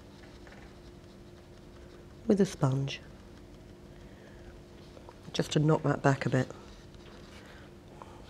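A sponge dabs softly on paper.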